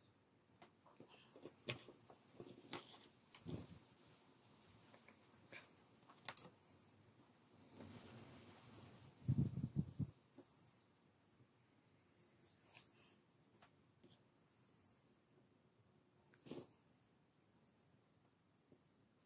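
A battery pack knocks and clicks as it is handled.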